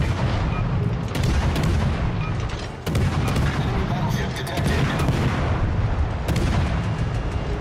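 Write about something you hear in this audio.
Shells explode with loud splashes in the water.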